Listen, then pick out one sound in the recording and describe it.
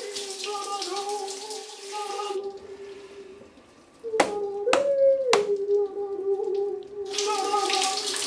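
A man sings in a shower.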